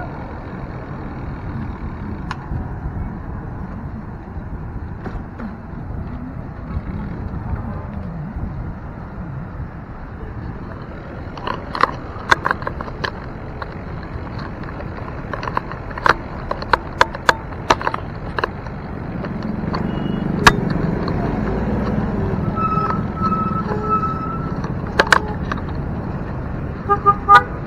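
Wind rumbles steadily past while riding outdoors.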